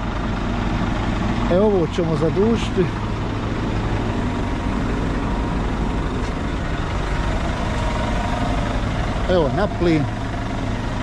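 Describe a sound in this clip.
A truck engine idles with a steady low rumble nearby.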